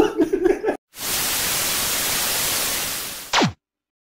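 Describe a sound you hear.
Static hisses loudly.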